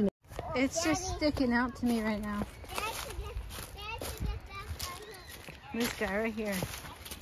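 A young woman talks animatedly close by.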